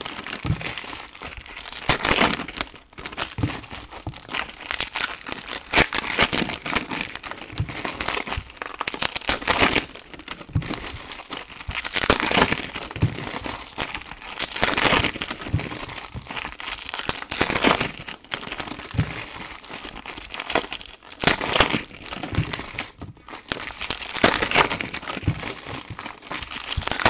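Foil card packs crinkle and tear open close by.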